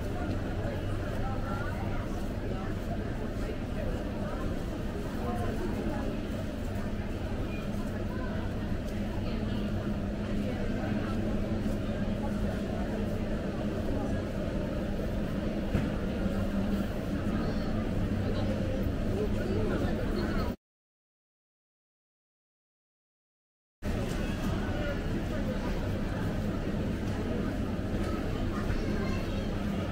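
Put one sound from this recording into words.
Shopping cart wheels rattle over a hard floor.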